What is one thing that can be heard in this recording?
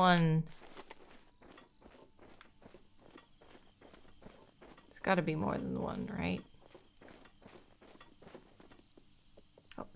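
Quick footsteps patter over grass.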